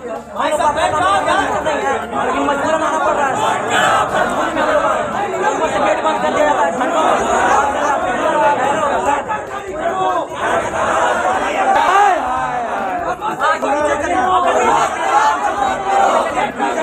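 A large crowd of young men shouts and chants loudly outdoors.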